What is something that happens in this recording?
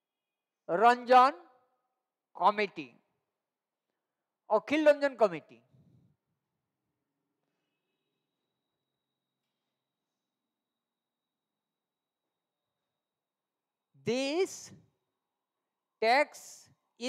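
A man speaks calmly in short phrases through a close microphone, with long pauses.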